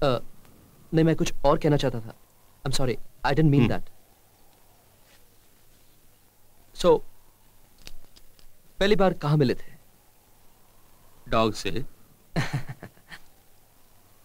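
A young man speaks softly nearby.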